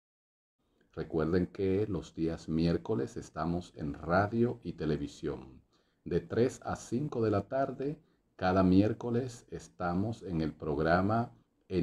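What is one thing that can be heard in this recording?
A man talks calmly and clearly to the listener, close to a microphone.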